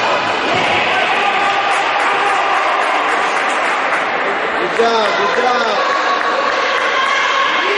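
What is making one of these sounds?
Young girls shout to each other across a large echoing hall.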